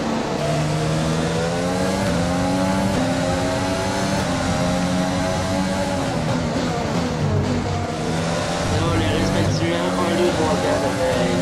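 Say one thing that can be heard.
A racing car engine screams at high revs, rising through the gears and dropping as it shifts down.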